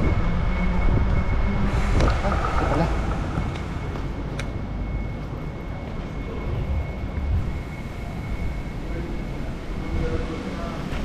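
Bicycle tyres roll over a concrete floor with a low rumble.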